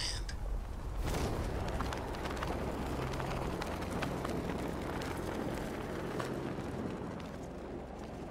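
Wind rushes loudly past a diving figure.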